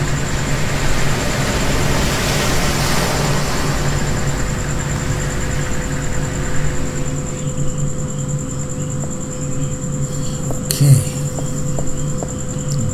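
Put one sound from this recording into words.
Heavy machinery hums and rumbles steadily.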